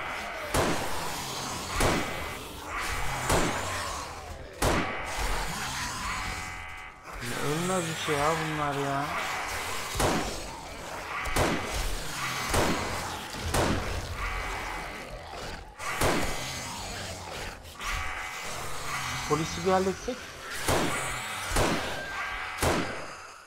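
Rifle shots ring out one after another at a steady pace.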